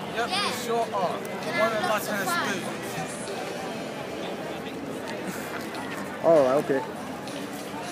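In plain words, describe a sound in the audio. A crowd murmurs in the distance outdoors.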